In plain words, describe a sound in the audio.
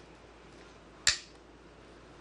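A game stone clicks sharply onto a wooden board.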